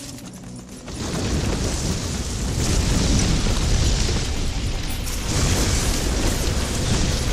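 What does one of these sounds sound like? Magic spells crackle and roar in a loud fight.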